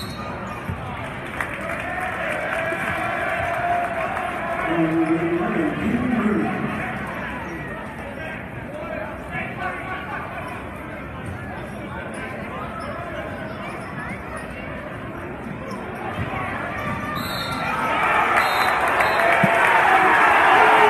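A crowd murmurs and cheers in a large echoing gym.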